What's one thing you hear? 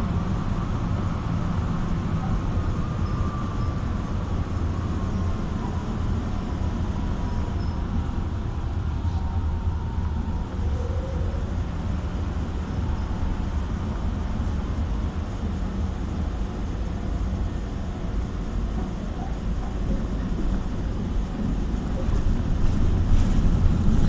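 Tyres roll on the road beneath a moving car.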